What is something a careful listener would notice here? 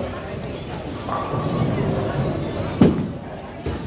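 A bowling ball rolls down a wooden lane.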